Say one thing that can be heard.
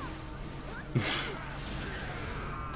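A loud blast of energy bursts with a boom and rushing whoosh.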